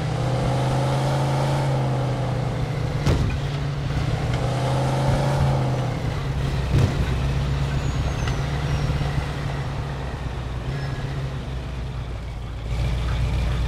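Tyres hiss over a snowy road.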